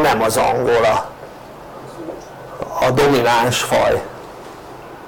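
An elderly man speaks calmly through a small clip-on microphone, close by.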